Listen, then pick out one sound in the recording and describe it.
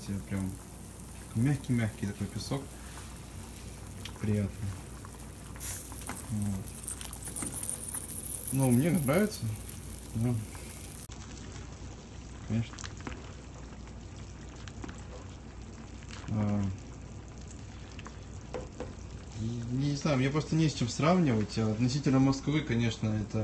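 Water boils and bubbles in a pot.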